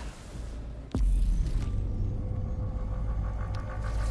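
A deep rumble booms as a large creature rises.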